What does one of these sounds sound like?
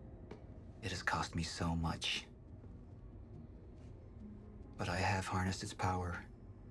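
A middle-aged man speaks calmly and menacingly, close by.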